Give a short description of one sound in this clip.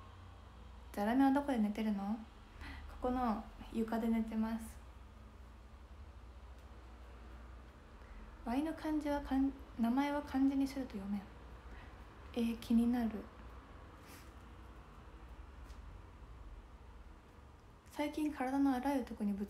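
A young woman talks softly and calmly into a close microphone, in short bursts with pauses.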